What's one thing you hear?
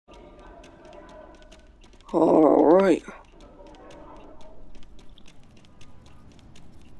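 A goat's hooves patter on the ground.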